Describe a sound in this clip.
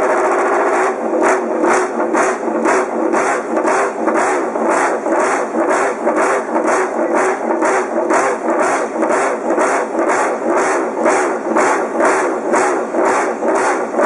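A racing motorcycle engine revs sharply in quick, repeated bursts.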